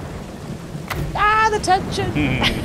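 A woman laughs loudly close to a microphone.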